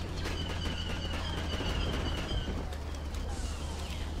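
A blaster rifle fires a rapid burst of shots.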